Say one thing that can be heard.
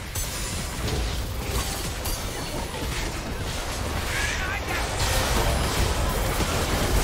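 Game spell effects and blows crackle and thud in a busy fight.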